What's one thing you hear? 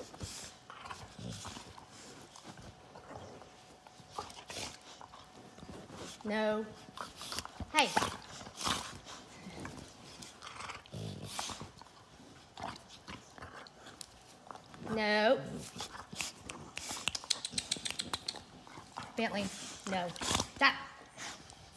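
Dogs scuffle and paw at each other on a soft surface.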